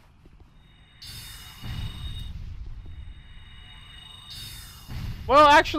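A magic spell hums and chimes with a bright ringing tone.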